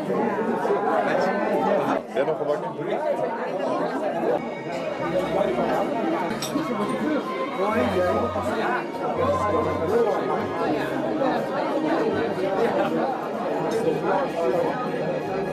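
A crowd of adults chatters all around in a room.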